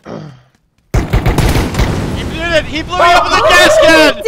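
An explosion bursts.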